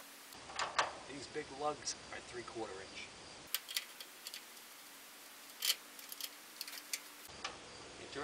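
A metal wrench clinks against metal fittings.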